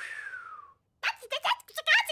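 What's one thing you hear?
A cartoon cat squeals and chatters in a high, squeaky voice.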